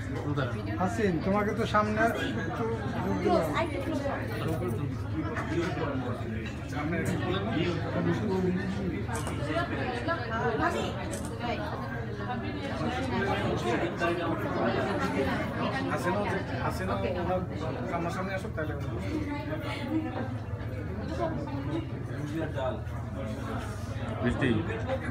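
A crowd of men and women chatter at once all around, close by.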